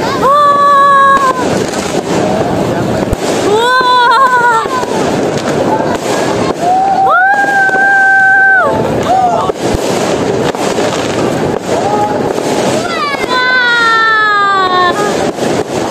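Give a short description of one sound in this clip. A large crowd of people chatters and calls out outdoors.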